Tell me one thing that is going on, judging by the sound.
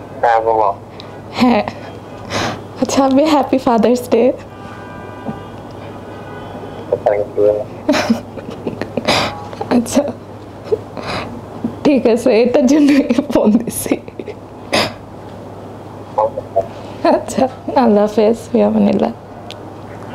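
A young woman talks cheerfully close to a microphone.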